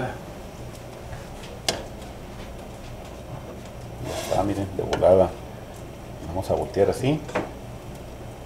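A battered pork trotter sizzles in hot oil in a frying pan.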